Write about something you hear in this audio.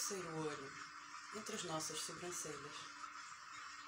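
A young woman speaks softly and calmly, close to a microphone.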